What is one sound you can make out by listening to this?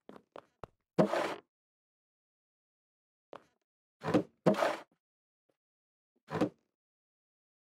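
A wooden barrel creaks open and shut.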